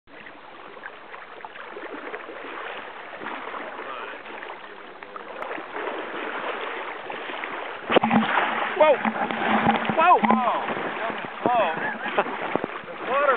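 A man wades through water with soft splashes.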